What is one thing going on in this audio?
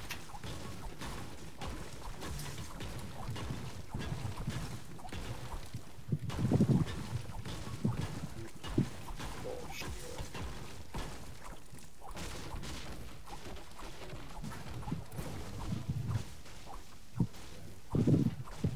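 A pickaxe strikes a wall again and again.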